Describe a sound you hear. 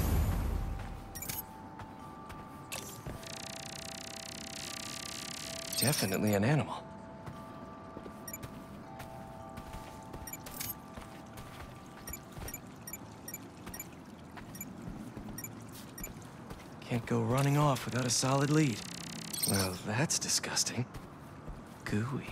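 Footsteps pad softly over grass and paving.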